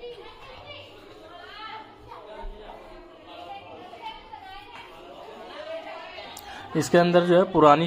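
Men and women talk softly in the background.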